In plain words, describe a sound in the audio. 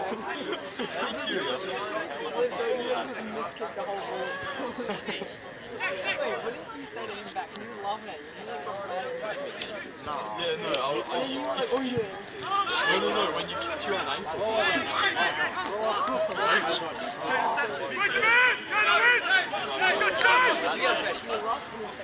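Players shout to one another across an open field outdoors.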